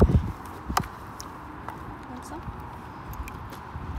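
A horse munches feed from a bucket.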